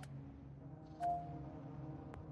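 A short electronic chime sounds.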